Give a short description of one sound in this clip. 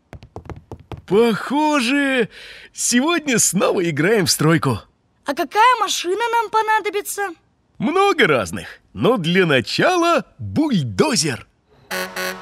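A man speaks cheerfully in a cartoonish voice.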